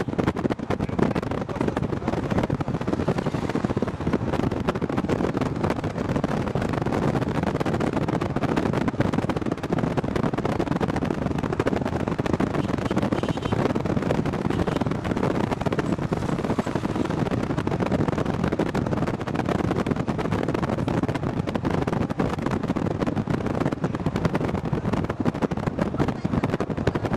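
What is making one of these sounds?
A vehicle engine rumbles steadily while driving along a road.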